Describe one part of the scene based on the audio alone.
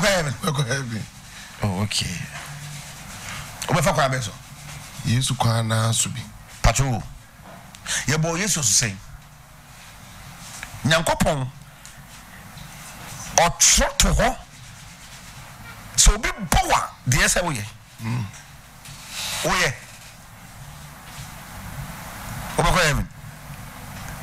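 A middle-aged man speaks with animation into a close microphone, in bursts with pauses.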